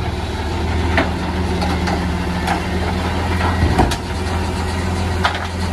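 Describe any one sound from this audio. A bin clanks against a garbage truck.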